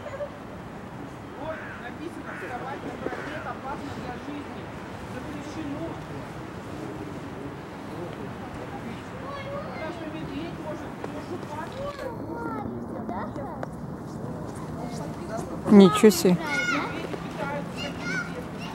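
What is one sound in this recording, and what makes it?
A polar bear cub growls and snarls at close range.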